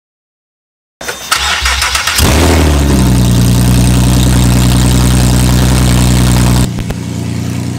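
A car engine roars loudly through an open exhaust.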